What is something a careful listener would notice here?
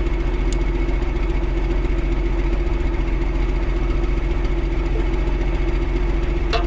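A tractor engine idles steadily nearby.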